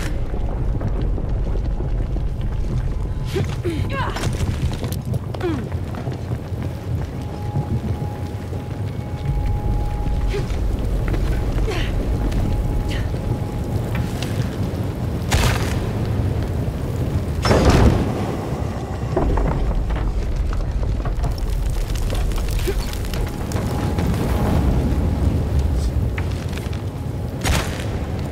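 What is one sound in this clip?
Fire roars steadily with a low rumble.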